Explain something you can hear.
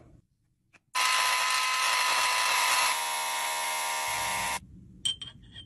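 A small electric grinder whirs loudly and steadily.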